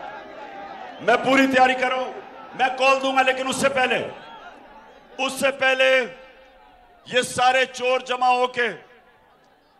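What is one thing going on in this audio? A man speaks forcefully into a microphone over loudspeakers, in short bursts.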